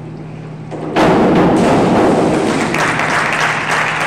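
A diver splashes into a pool.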